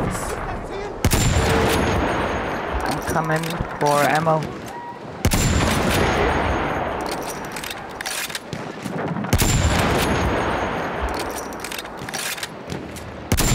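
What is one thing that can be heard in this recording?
Rifle shots boom loudly and echo away.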